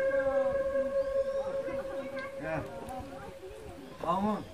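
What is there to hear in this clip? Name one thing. A bamboo flute plays a long, steady note.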